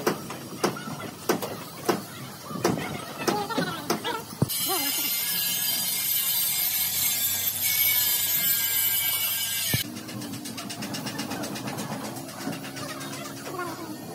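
A wrench turns a bolt on metal.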